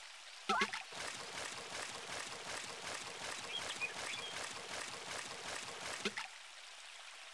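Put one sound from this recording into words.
A fishing reel clicks rapidly as line is wound in.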